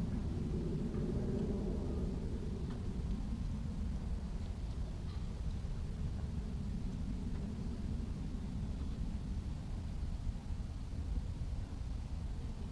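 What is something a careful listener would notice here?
Wind buffets outdoors steadily.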